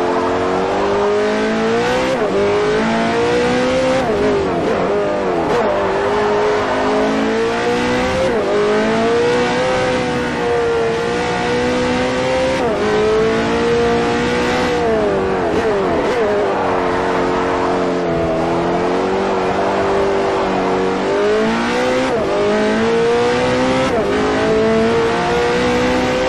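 A racing car engine roars loudly, revving up and dropping sharply with each gear change.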